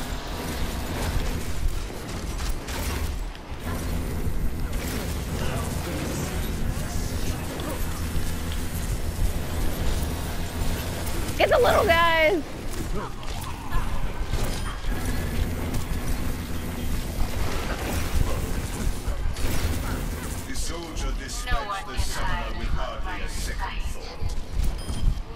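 Bow shots twang and energy beams crackle in a busy game battle.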